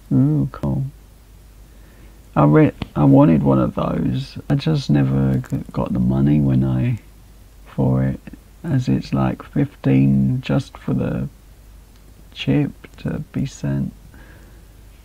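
A young man talks casually and close to a microphone.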